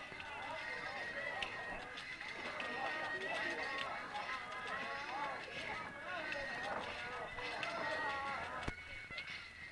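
A crowd of men murmurs and chatters.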